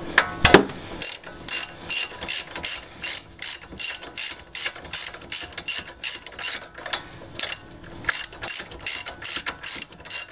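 A ratchet wrench clicks in a steady, even rhythm.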